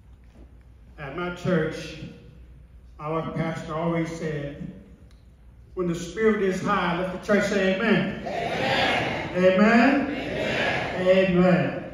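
An elderly man speaks with animation through a microphone and loudspeakers in an echoing hall.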